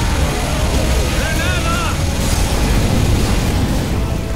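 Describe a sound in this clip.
An assault rifle fires in bursts in a video game.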